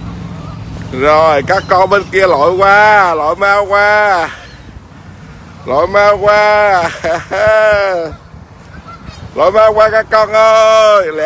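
Canada geese honk loudly on the water.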